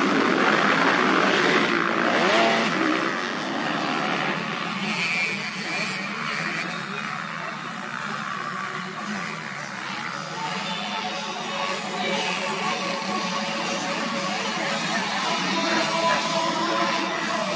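Dirt bike engines rev and roar loudly as several motorcycles pass close by.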